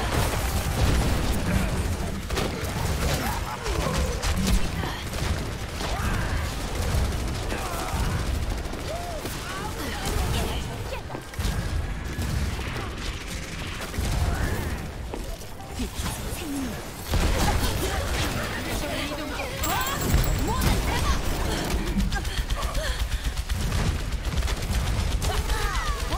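Video game gunfire crackles in rapid bursts.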